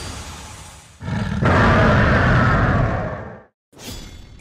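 A video game monster roars with a deep, rumbling growl.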